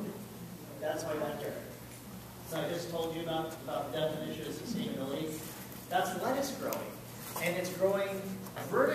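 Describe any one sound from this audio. A man speaks to an audience in an echoing room, with pauses between phrases.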